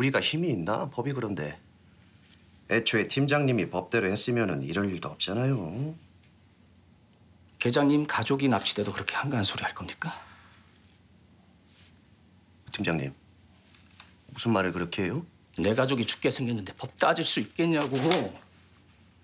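A middle-aged man speaks calmly and lightly.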